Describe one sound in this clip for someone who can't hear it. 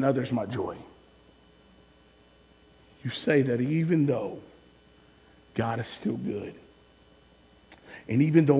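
A man speaks with animation and long pauses through a microphone.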